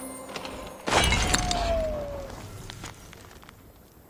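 Something is rummaged through with a rustle.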